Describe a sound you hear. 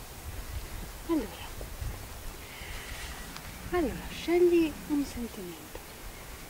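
A young woman speaks calmly, close by, outdoors.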